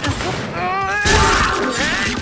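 A huge creature roars and growls.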